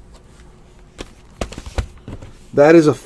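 A card pack crinkles and taps as a hand handles it.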